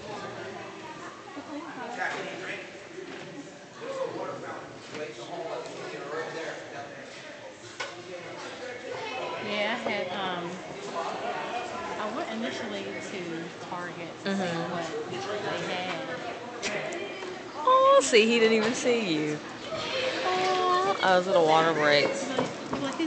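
Children talk and call out in a large echoing hall.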